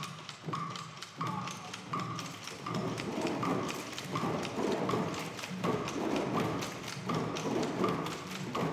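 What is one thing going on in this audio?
A group of drummers beats hand drums in a steady rhythm.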